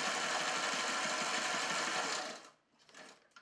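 A sewing machine stitches with a fast, steady whir.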